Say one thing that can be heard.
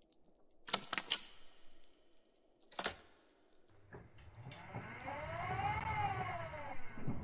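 A metal lever switch clunks down.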